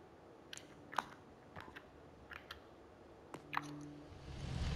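Soft interface clicks and chimes sound in short bursts.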